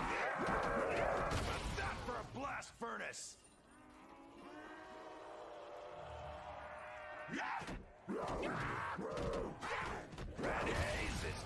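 Zombies snarl and growl loudly close by.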